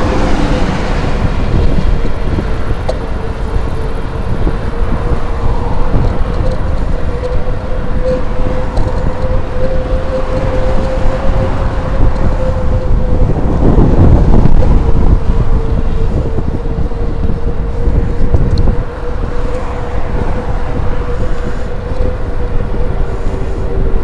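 Tyres rumble steadily over pavement.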